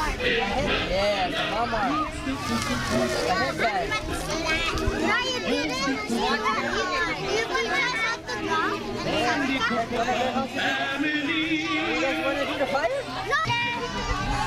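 A man talks calmly to the children.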